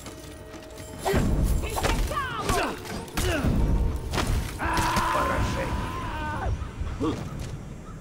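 A warrior grunts and shouts in combat.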